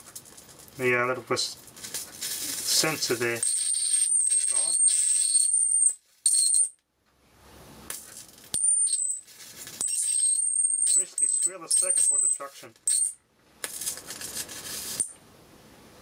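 Electric sparks crackle and sizzle in short bursts.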